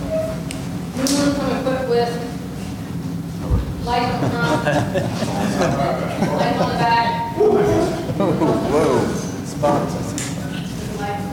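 A woman speaks to a room, heard from across a hall with a slight echo.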